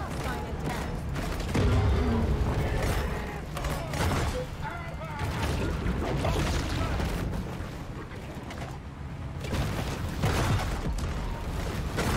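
Gunfire and explosions burst in quick rounds.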